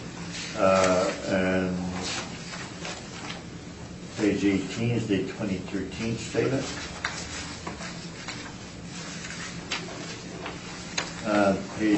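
A woman speaks calmly, heard through a room microphone.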